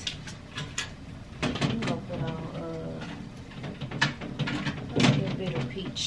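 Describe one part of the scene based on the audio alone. A glass cabinet door clicks open and shut.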